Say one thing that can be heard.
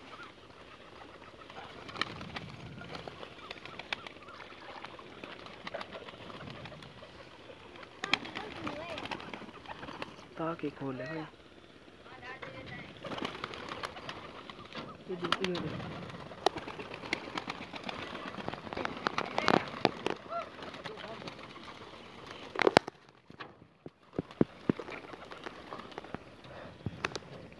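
Pigeons peck and scratch at grain on the ground.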